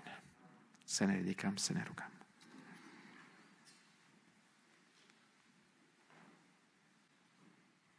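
A middle-aged man speaks calmly through a microphone in a large room with echo.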